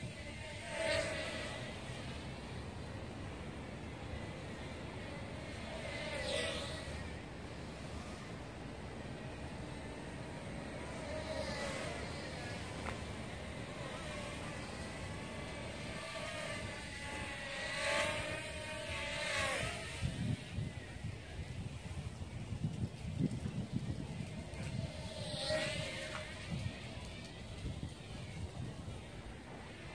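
A small toy drone whines and buzzes as it flies close by, its pitch rising and falling.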